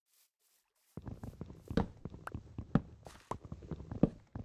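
An axe chops repeatedly at wood with quick dull knocks.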